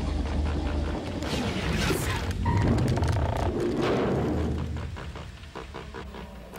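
A deep mechanical rumble whooshes past.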